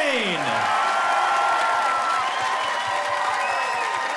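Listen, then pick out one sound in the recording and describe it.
A crowd claps and cheers in a large room.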